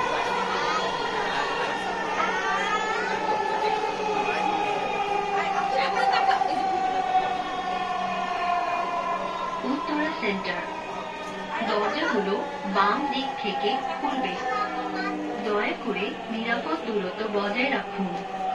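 A train's electric motor whines steadily, its pitch slowly falling as the train slows.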